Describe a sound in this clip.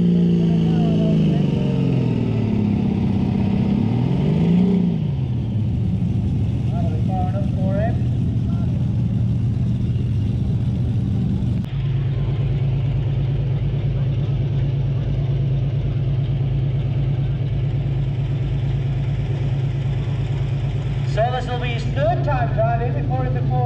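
A tractor engine roars loudly in the distance, its pitch rising and falling.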